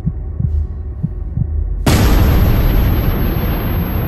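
A hard open-hand slap lands on a man's face.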